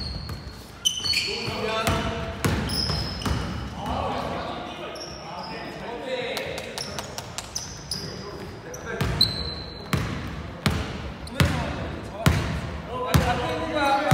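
Sneakers squeak sharply on a polished floor.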